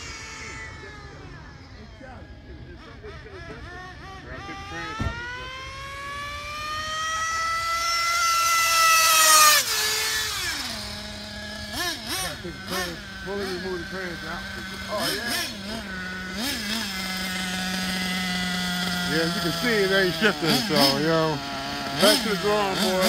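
A toy car's electric motor whines loudly, rising in pitch as it speeds closer, then drops away.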